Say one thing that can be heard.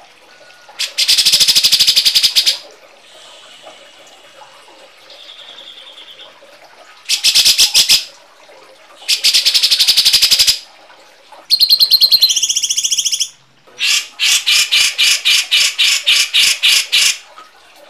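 Birds give harsh, rapid chattering calls in loud bursts with short pauses between them.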